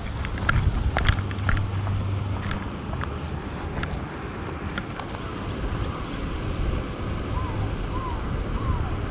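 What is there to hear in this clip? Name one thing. Wind blows and buffets the microphone outdoors.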